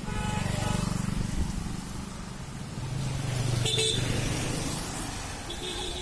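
A motorcycle engine buzzes as it passes close by.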